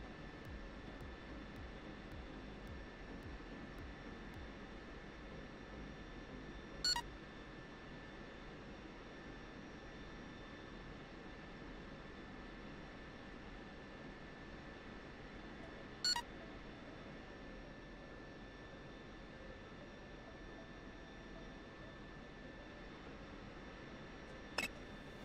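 A steady electrical hum drones.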